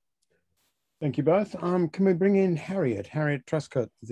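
An elderly man speaks calmly over an online call.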